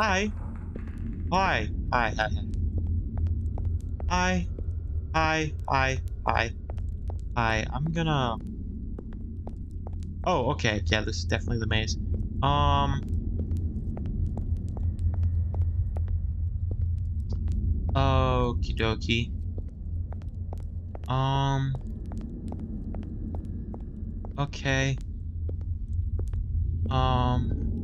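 A torch flame crackles and roars softly.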